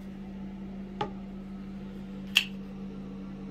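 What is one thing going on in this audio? A toilet lid knocks as it is lifted.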